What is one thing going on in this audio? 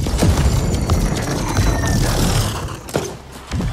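Flames crackle after an explosion.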